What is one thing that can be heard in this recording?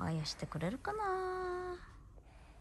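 A young child calls out in a high voice close by.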